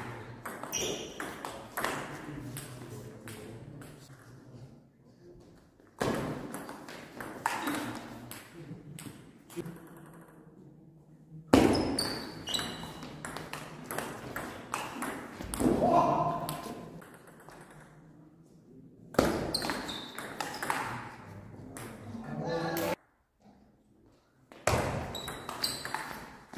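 A table tennis ball clicks back and forth between paddles and the table in a large echoing hall.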